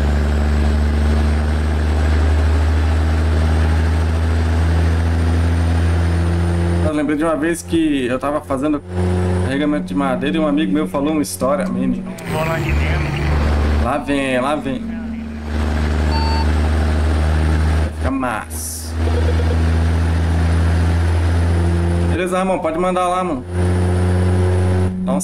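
A truck engine hums and drones steadily.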